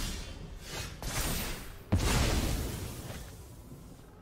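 A game card lands with a bright magical whoosh.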